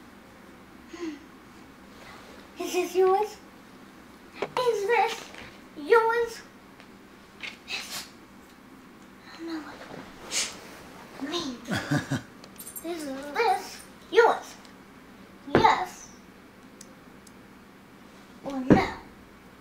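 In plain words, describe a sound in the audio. A young girl talks in an animated voice.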